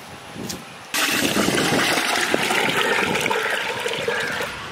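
Water pours from a container into a pot with a splashing rush.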